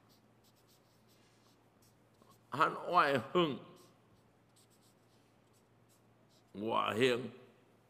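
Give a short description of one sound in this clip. A felt-tip marker squeaks across paper.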